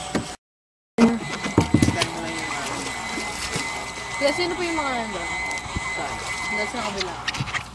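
Water rushes and splashes past the side of a moving boat.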